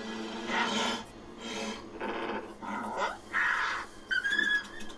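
A creature snarls and growls menacingly.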